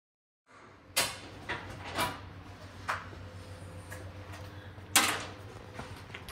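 Plastic car parts knock and clatter against a metal grate.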